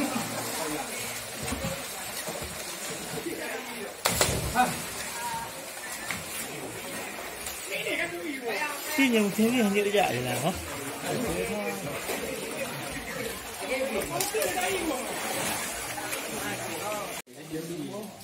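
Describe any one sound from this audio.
Swimmers splash in water.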